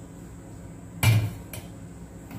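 A metal pot clanks on a stove.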